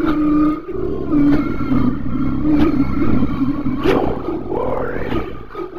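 An animatronic singing fish toy sings through a small loudspeaker.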